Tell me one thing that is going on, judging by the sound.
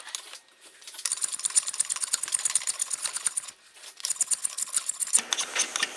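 A rasp scrapes quickly back and forth across wood.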